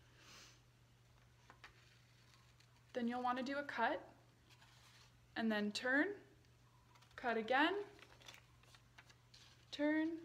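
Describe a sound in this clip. Scissors snip through paper.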